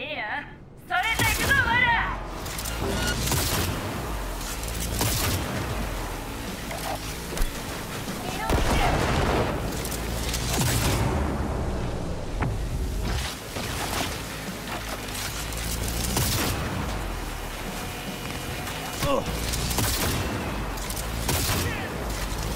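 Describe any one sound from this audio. A rifle fires loud shots in quick bursts.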